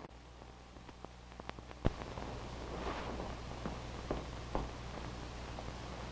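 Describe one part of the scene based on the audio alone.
Footsteps tap across a hard floor indoors.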